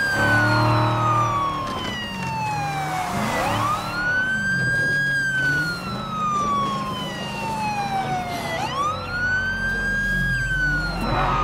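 A car engine hums and revs as it drives over rough ground.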